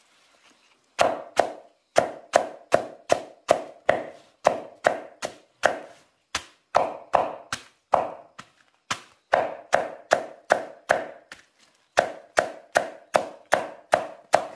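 A knife chops rapidly through a bundle of stalks on a wooden block.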